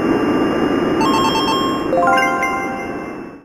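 Bright chimes ring in quick succession.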